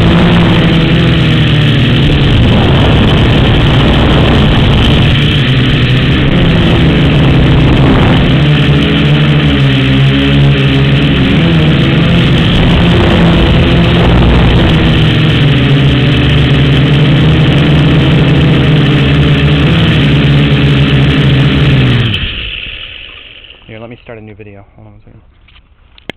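A small propeller motor buzzes loudly at high speed, then winds down and stops.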